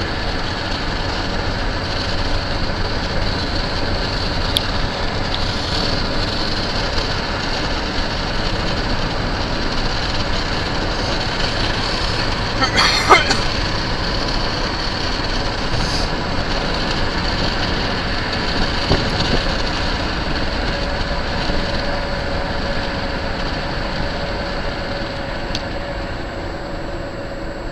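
Wind and road noise rush steadily past a moving vehicle.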